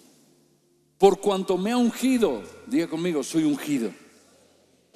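A man speaks with animation through a microphone and loudspeakers in a large echoing hall.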